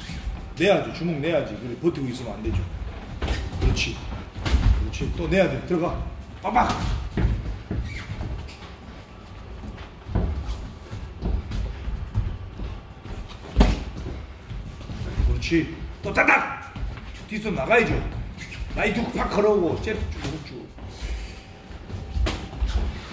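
Feet shuffle and thump on a padded floor.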